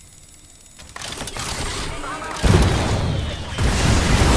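Gunfire rattles loudly from close by.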